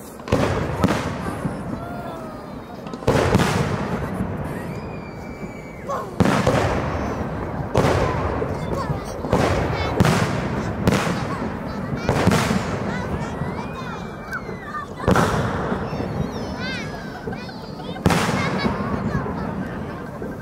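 Fireworks burst with loud booming bangs that echo away.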